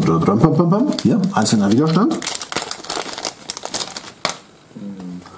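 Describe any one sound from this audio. A plastic bag crinkles as hands open it.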